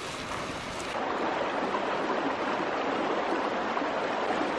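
A spatula scrapes against a pan.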